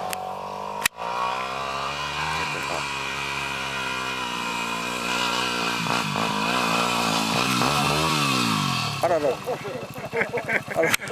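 A dirt bike engine revs loudly and climbs nearby, its pitch rising and falling.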